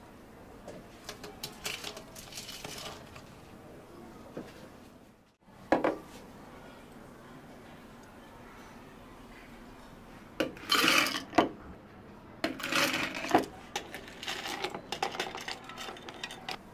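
Ice cubes clatter and rattle into a glass from a scoop.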